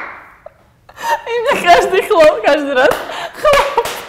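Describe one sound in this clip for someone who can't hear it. A young woman exclaims with animation, close by.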